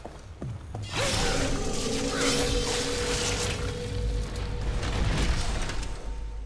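A magic blast whooshes loudly.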